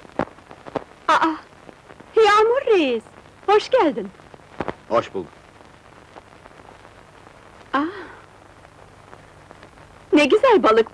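A young woman speaks brightly, close by.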